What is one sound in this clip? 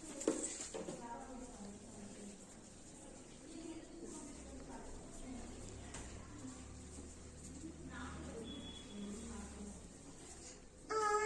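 A young child speaks nearby.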